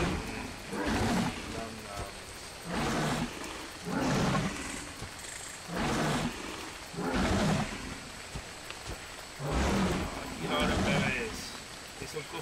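Leafy plants rustle in bursts as they are picked by hand, again and again.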